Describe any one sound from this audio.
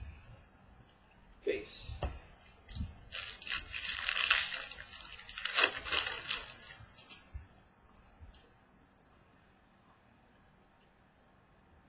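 Trading cards shuffle and riffle between hands.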